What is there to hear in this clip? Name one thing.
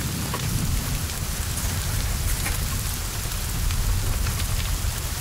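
Flames roar and crackle as a car burns.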